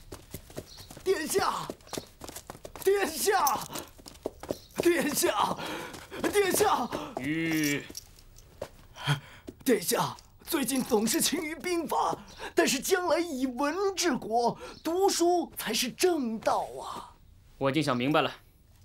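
A man speaks calmly and firmly nearby.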